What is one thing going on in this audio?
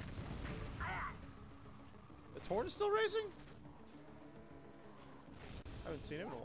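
A vehicle engine hums and revs in a video game.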